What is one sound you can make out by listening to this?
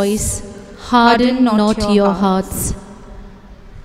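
A young woman reads out through a microphone in a room with some echo.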